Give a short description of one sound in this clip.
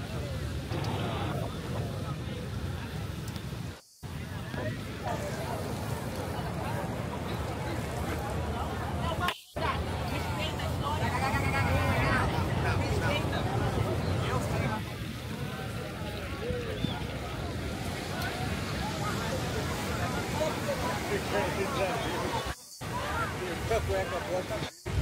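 A crowd of adults chatters and calls out nearby, outdoors.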